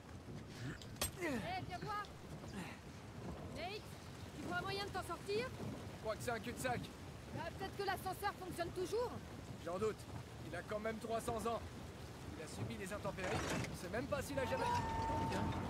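A young man talks casually into a microphone.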